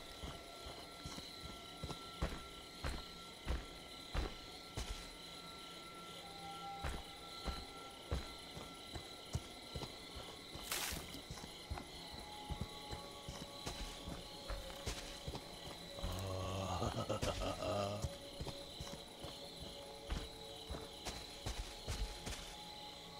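Heavy footsteps thud steadily on soft ground.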